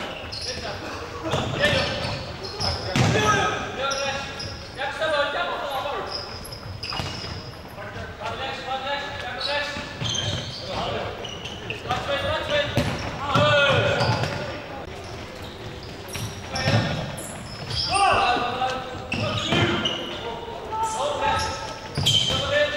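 A ball thuds as it is kicked and bounces.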